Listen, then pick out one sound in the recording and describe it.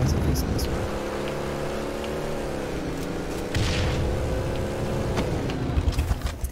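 A vehicle engine hums and revs steadily.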